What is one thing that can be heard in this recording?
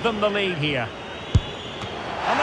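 A football is struck hard with a single thump.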